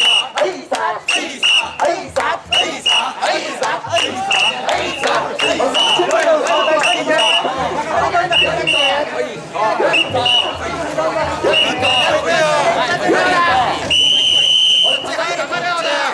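A crowd of men chants loudly and rhythmically outdoors.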